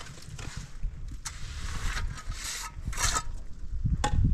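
A trowel scrapes mortar on concrete blocks.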